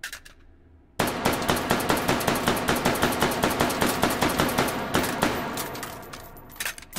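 A pistol fires rapid shots that echo down a long range.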